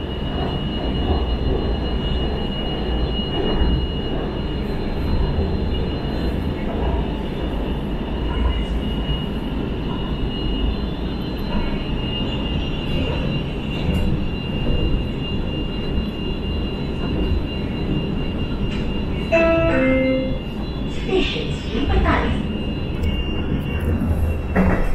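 A train rumbles steadily along the tracks.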